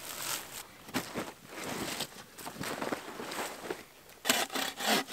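A plastic tarp rustles and crinkles as it is pulled across the ground.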